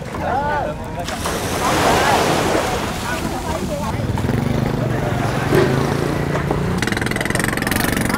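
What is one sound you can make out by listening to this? Small waves wash onto the shore.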